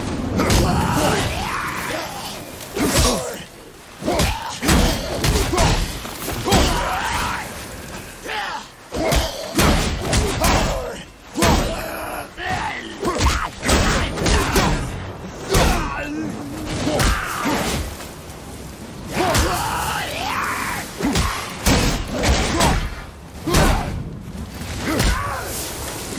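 Enemies shatter with bursts of crackling sound.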